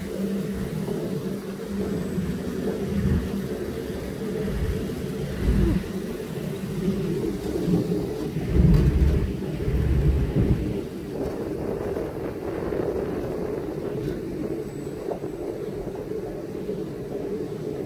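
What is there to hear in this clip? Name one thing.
Wind buffets loudly in gusts outdoors.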